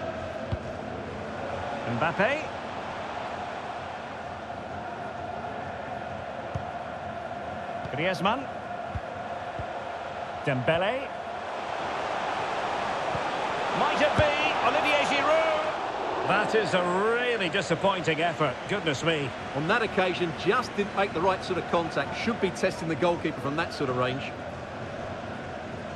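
A large stadium crowd roars and cheers steadily, swelling louder for a while.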